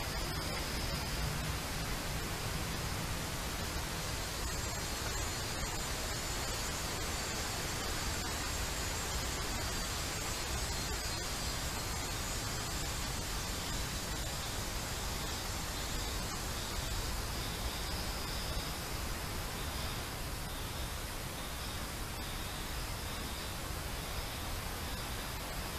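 Dry leaves rustle softly as a small deer steps and forages on the forest floor.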